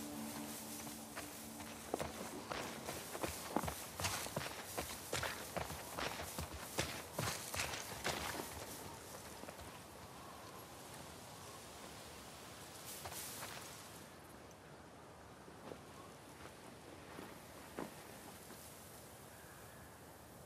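Footsteps swish quickly through tall grass.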